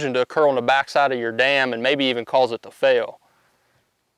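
A young man speaks calmly and clearly into a clip-on microphone.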